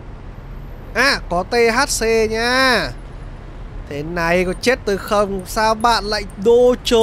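A young man answers in a calm voice.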